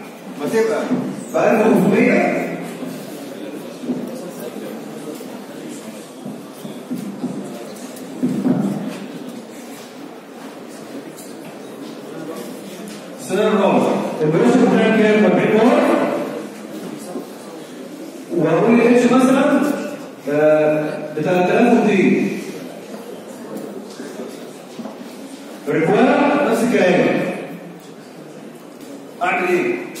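A man lectures through a microphone, speaking in bursts with pauses.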